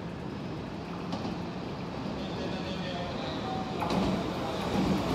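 A train approaches and rolls into a station with a rising rumble.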